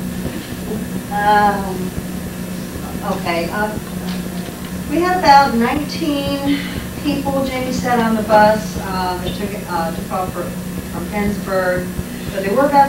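A woman speaks calmly and steadily.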